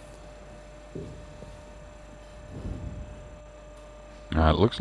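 Pool balls roll softly across the cloth.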